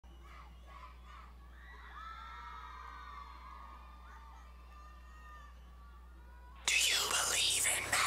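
A large crowd cheers and whistles in an echoing hall.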